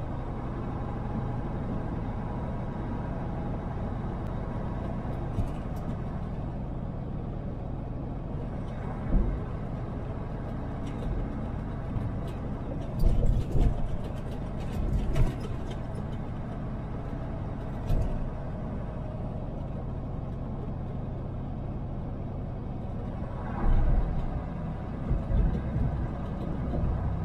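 Tyres roll on asphalt with a steady rumble.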